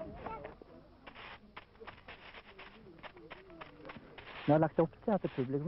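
Footsteps crunch on gravel as a group walks.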